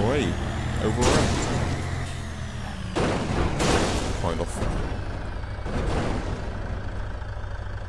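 Metal bangs and clatters as a truck tumbles over.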